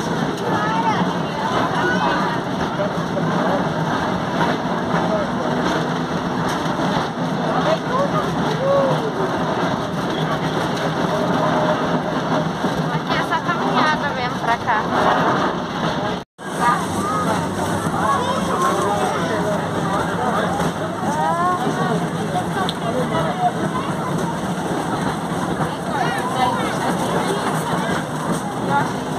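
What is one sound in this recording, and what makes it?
A small train engine hums steadily while rolling along.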